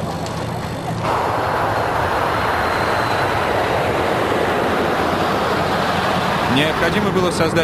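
A jet airliner's engines roar loudly.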